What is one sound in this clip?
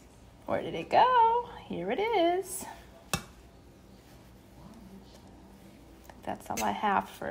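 A spoon scrapes and stirs rice in a metal pot.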